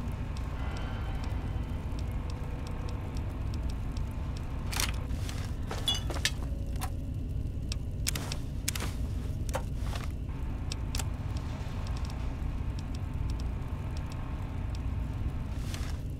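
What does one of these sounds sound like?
Soft electronic clicks tick as a menu scrolls.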